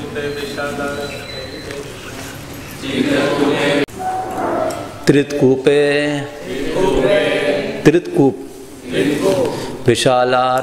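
A man recites aloud in a measured, sing-song voice through a microphone.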